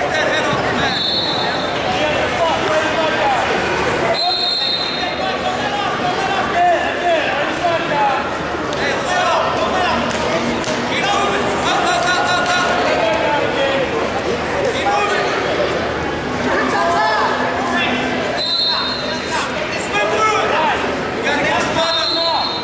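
Whistles blow sharply now and then.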